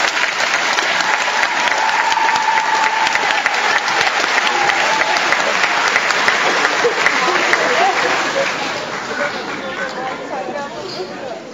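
A young choir sings together in a large echoing hall.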